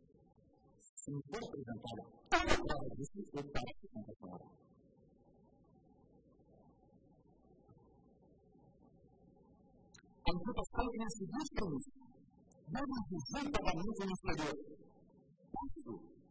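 A middle-aged man speaks formally into a microphone, pausing between phrases.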